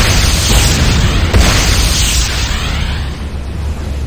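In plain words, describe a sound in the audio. Gunfire and explosions crack and boom loudly.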